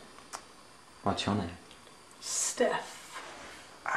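A young woman speaks briefly close by.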